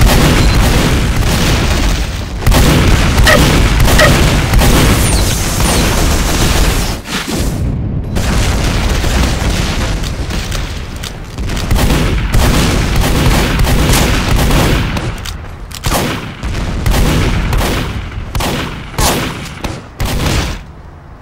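A shotgun fires in rapid blasts.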